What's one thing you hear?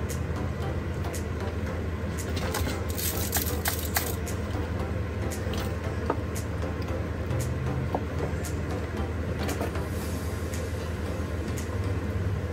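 Small metal tools clink and tap on a wooden workbench.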